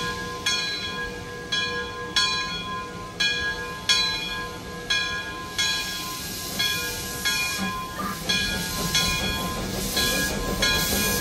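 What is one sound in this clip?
A steam locomotive chuffs in a steady rhythm as it pulls away.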